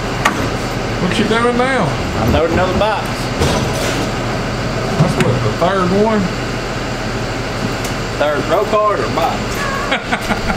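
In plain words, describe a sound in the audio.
A man talks cheerfully nearby.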